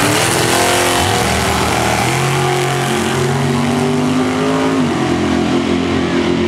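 A car engine roars loudly as the car accelerates away, shifting gears.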